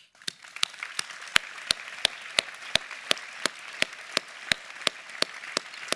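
A man claps his hands steadily and slowly, close to a microphone.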